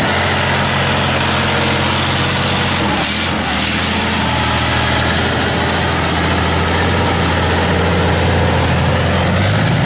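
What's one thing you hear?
Metal tracks clatter and squeal over rough ground.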